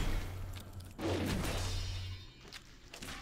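A magic blast hits with a whooshing, crackling burst.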